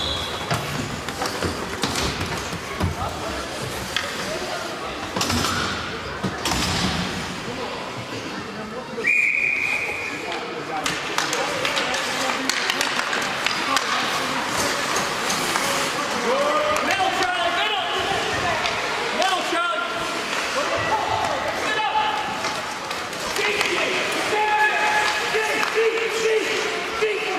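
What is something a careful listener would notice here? Ice skates scrape and carve across ice.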